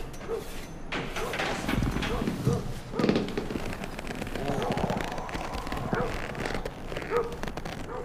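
A young man groans and breathes heavily.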